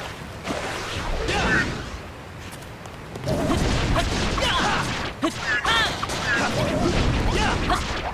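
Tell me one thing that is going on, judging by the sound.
Game sword strikes hit a monster with sharp whacks.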